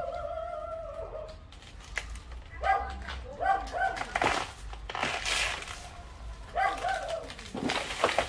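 Banana leaves rustle and tear as a man pulls at them.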